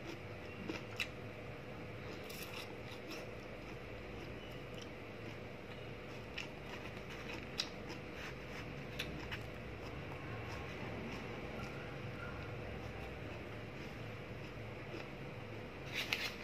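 A young woman chews and eats noisily close by.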